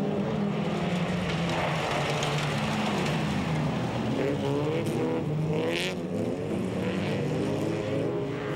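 Several folkrace car engines roar at full throttle around a dirt track.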